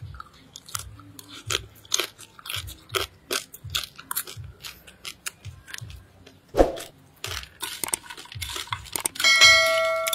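A man chews crunchy food loudly, close up.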